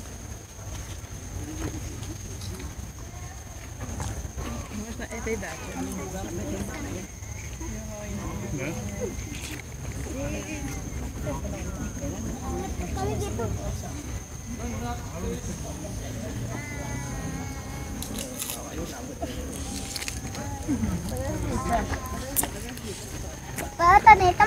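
A woman chats casually nearby.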